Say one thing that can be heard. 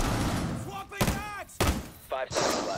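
A gun fires a few sharp shots.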